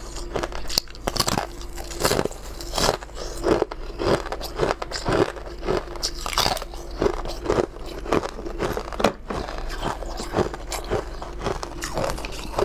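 A young woman chews noisily with her mouth close to a microphone.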